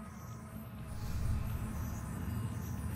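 A low game rumble swells.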